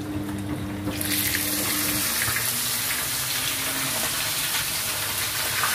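Oil sizzles loudly in a frying pan.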